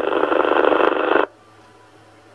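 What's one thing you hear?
A radio receiver hisses with loud static, then cuts to near silence.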